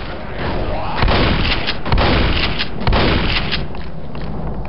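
A pump-action shotgun fires several blasts.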